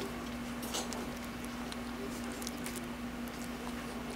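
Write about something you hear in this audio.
A young woman chews food close to the microphone.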